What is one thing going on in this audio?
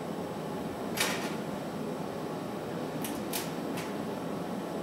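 Metal tongs click sharply a few times.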